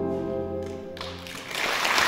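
A brass band plays a final held chord in a large hall.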